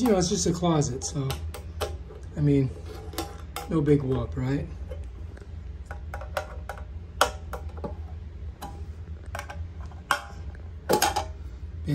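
A metal tool scrapes and clicks against the rim of a tin can.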